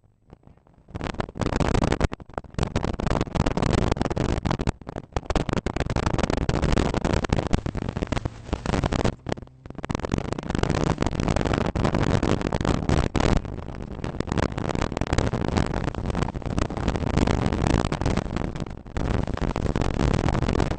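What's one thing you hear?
Tyres rumble and crunch over a gravel road.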